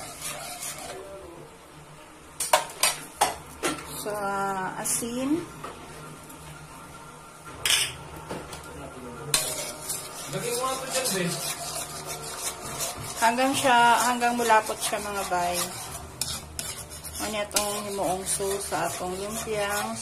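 Hot sauce sizzles and bubbles in a pan.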